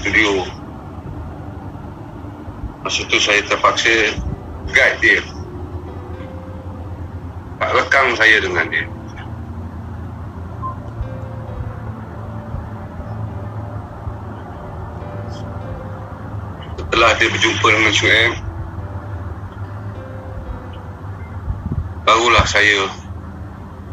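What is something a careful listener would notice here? An elderly man speaks calmly in short bursts, heard through an online call.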